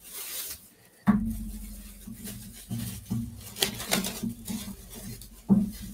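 Plastic wrap crinkles and rustles between hands.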